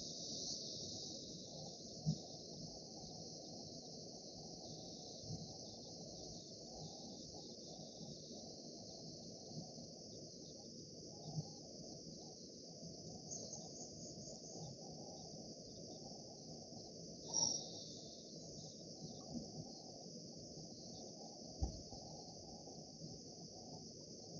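A river flows steadily over rocks nearby.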